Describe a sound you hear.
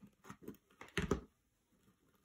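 A glue gun is set down on a table with a short knock.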